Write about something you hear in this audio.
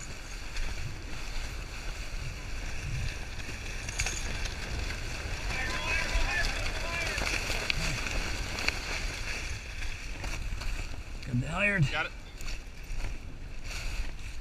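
A sail flaps and rustles.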